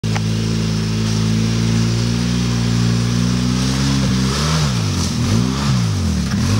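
An all-terrain vehicle engine rumbles steadily as it drives closer.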